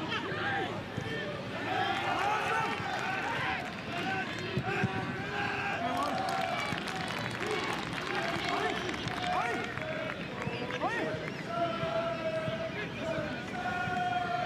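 A large crowd chants and cheers in an open stadium.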